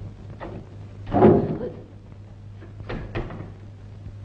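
A wooden chair knocks and scrapes on the floor.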